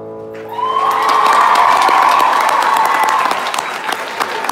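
A large audience cheers and screams in an echoing hall.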